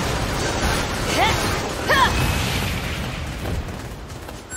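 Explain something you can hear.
Explosions boom and crackle during a fight.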